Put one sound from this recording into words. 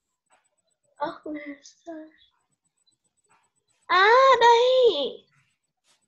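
A child speaks briefly over an online call, then calls out in a drawn-out voice.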